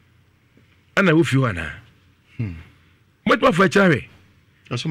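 A middle-aged man speaks with animation into a microphone, close by.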